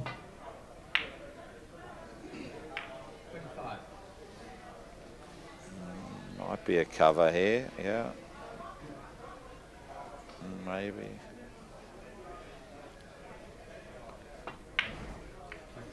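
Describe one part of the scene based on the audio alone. Billiard balls knock together with sharp clicks.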